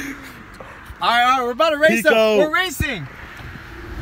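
A young man shouts excitedly close by.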